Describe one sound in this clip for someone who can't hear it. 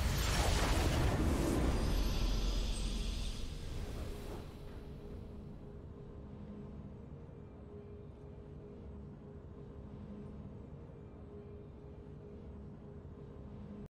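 A triumphant game fanfare swells and then fades to a soft hum.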